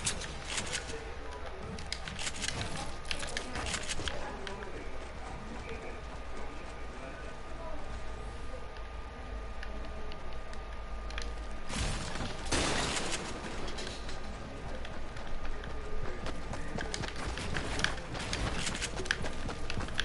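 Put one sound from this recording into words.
Building pieces clatter and snap into place with sharp clicks.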